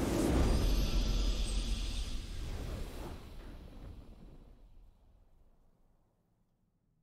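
A triumphant game fanfare blares and slowly fades away.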